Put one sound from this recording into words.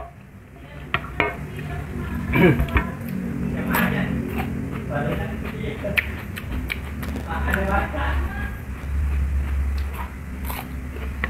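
A young man chews crunchy vegetables noisily, close up.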